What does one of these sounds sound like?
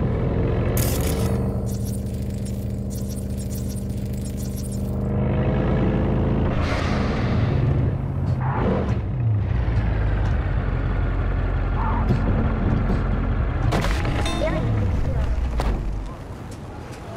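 A vehicle engine hums steadily and rises and falls in pitch as it drives.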